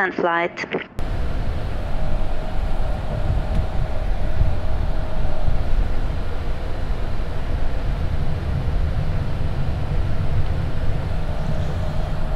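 A jet aircraft's engines rumble steadily as it taxis.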